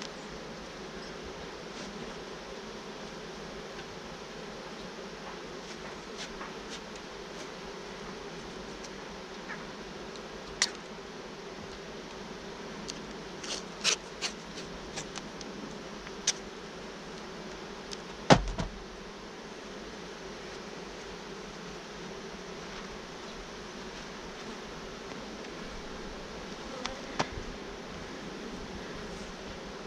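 Honeybees buzz steadily close by.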